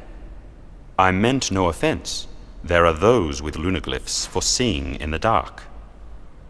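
A young man speaks calmly and clearly.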